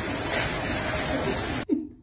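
A seal pup cries out loudly.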